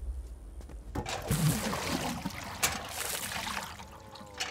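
Water poured from a bucket splashes onto a car windshield.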